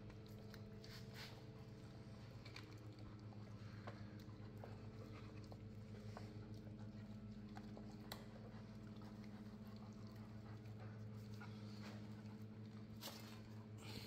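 A dog licks and chews wetly at food on the floor.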